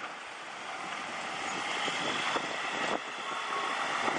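A freight wagon rolls slowly along rails.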